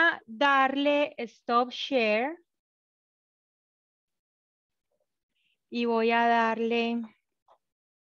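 A woman speaks calmly through an online call, in short bursts with a pause.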